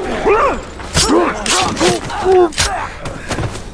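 Blades strike and slash in a close fight.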